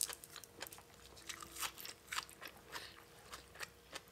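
A woman crunches on crisp leaves close to a microphone.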